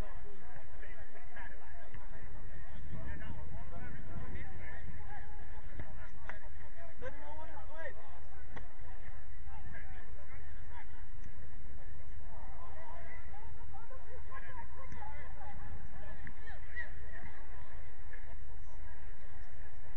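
Distant men shout and call out to each other outdoors.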